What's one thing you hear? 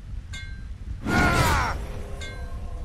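A magical burst whooshes and rings out with a bright, ringing hum.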